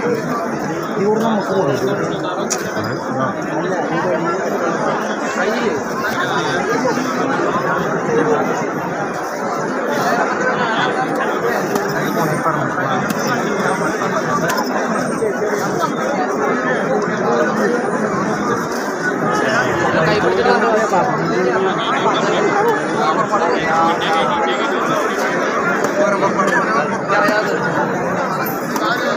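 A large crowd of men and women chatters loudly all around outdoors.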